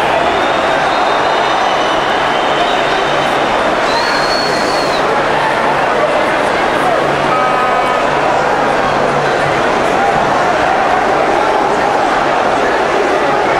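A large crowd of fans chants and roars loudly in an echoing stadium.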